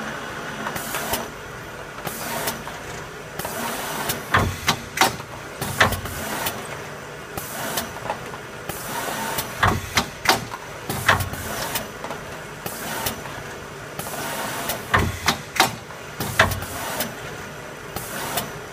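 Plastic film crinkles and rustles as packs pass through the machine.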